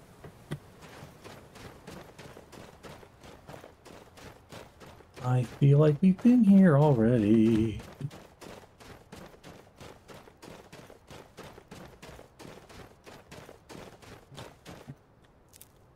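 Footsteps run quickly over snowy ground.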